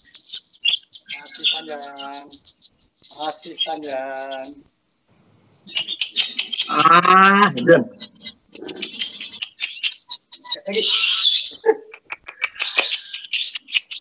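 Small songbirds chirp and trill rapidly and loudly, close by.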